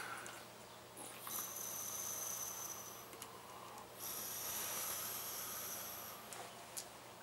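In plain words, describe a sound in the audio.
An electronic cigarette hisses softly as a man draws on it.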